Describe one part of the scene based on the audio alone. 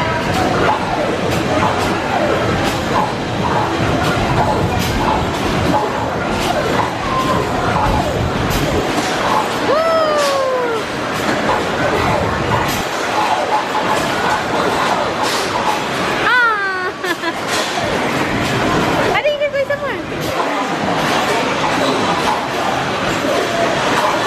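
An arcade game plays loud music and sound effects.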